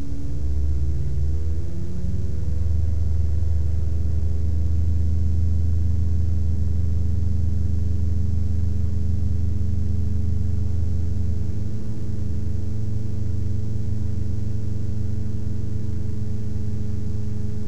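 Wind rushes past the plane.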